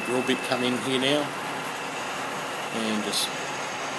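A drill bit bores into spinning metal.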